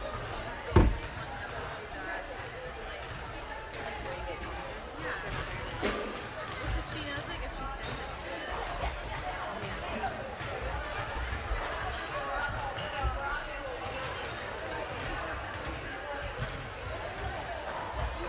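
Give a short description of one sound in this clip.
Basketball shoes squeak on a hardwood floor.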